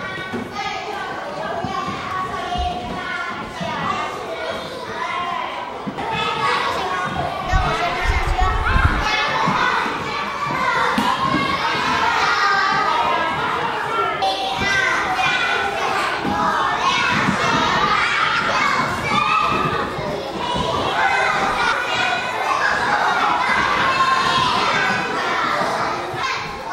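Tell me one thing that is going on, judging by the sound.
Young children chatter and shout excitedly nearby.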